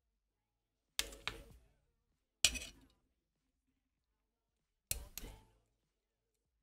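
Metal parts click and clack sharply as they are pressed together.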